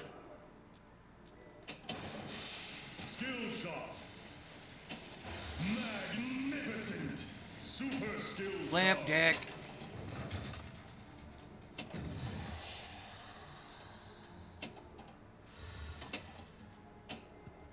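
A pinball machine's flippers click and knock.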